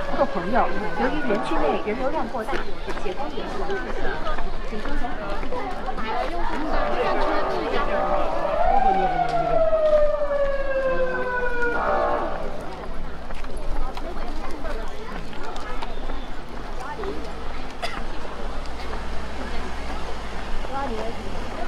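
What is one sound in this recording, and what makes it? A crowd of people chatter as they walk outdoors.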